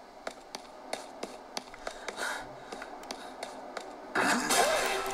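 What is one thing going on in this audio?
Buttons on a handheld console click sharply under thumbs.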